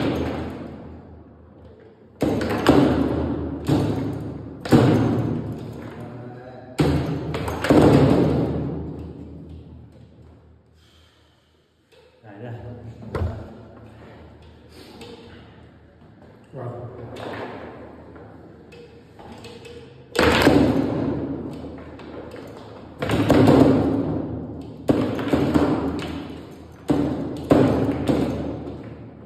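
A foosball hits the table walls and goals with loud, echoing clacks.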